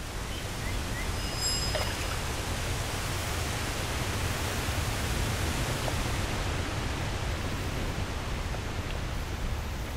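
Water splashes softly as a character wades through it.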